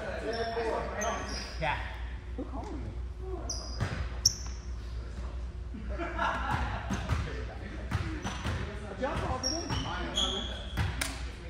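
Sneakers squeak sharply on a gym floor, echoing in a large hall.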